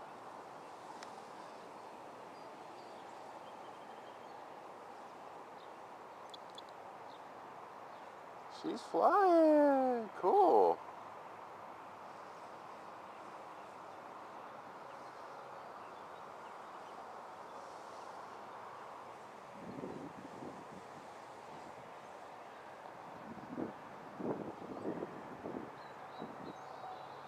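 A small model plane's motor hums faintly overhead.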